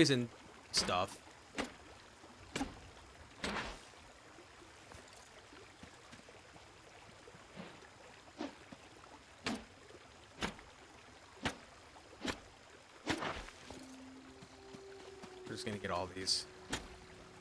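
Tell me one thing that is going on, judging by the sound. A pickaxe strikes stone with sharp, repeated knocks.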